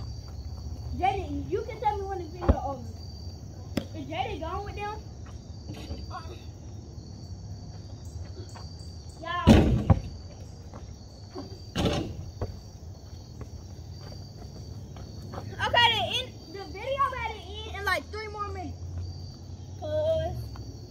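Young boys talk and shout outdoors, close by.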